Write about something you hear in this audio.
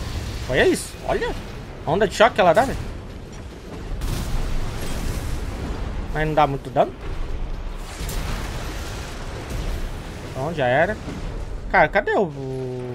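Heavy gunfire and blasts rumble continuously.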